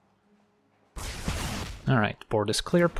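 A fiery spell effect whooshes and bursts.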